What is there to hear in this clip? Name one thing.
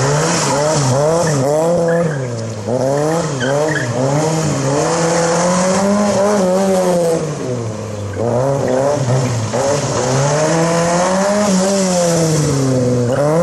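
A small car engine revs hard close by, rising and falling over and over.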